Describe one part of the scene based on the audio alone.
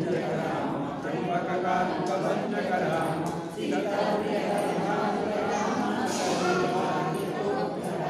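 A group of men chant together in unison.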